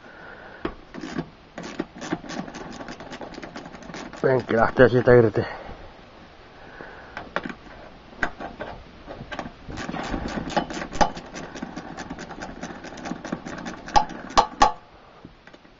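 A ratchet wrench clicks rapidly as it turns a bolt.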